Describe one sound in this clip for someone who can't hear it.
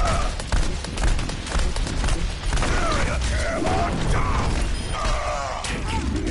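Blasts and explosions boom in a video game.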